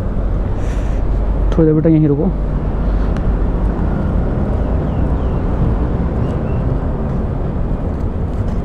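A fabric pouch rustles as hands fold and pack it.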